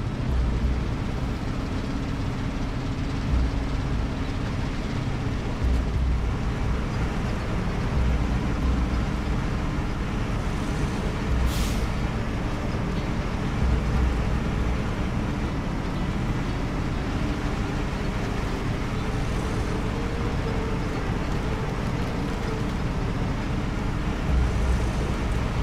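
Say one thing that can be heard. A heavy truck engine rumbles and strains steadily.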